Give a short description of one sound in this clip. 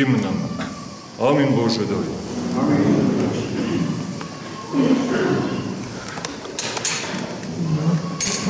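A man chants in a deep voice in a reverberant hall.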